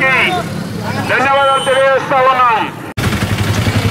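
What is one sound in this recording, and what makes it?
A crowd of men chants slogans loudly outdoors.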